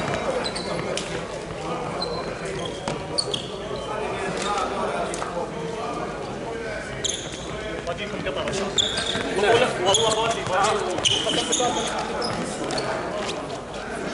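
A volleyball thumps off hands and the floor.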